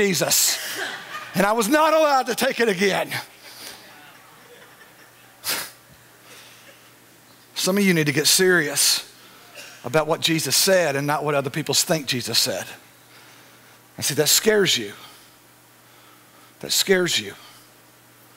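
A middle-aged man speaks into a microphone with pauses, in a calm, earnest voice.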